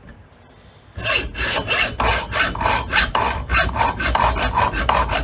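A metal file rasps back and forth on metal in quick strokes.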